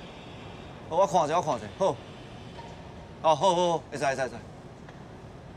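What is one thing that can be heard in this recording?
A younger man answers with animation.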